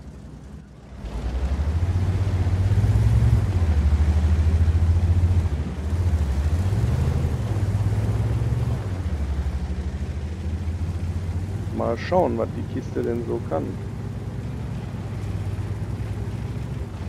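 A heavy tank engine rumbles and roars as the tank drives off.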